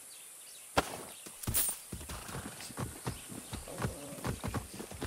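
A rifle fires sharp, loud shots in quick succession.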